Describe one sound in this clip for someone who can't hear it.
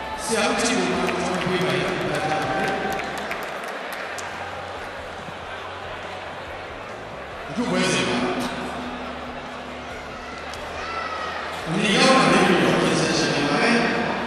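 An elderly man chants slowly in long drawn-out phrases into a microphone, heard through loudspeakers.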